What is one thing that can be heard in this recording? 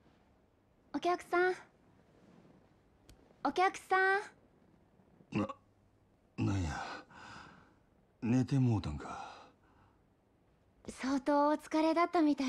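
A young woman speaks softly and gently.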